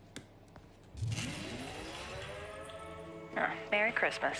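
Lights switch on with a rising electric hum.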